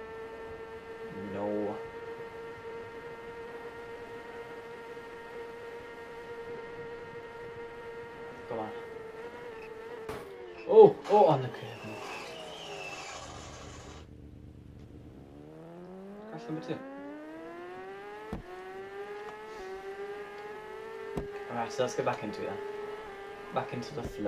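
A motorcycle engine drones at high revs, drops away, then revs up again.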